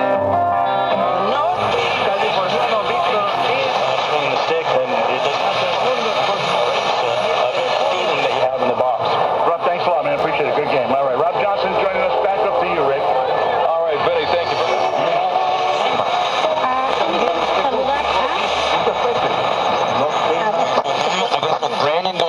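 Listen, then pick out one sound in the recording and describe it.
An old radio plays through a small tinny speaker.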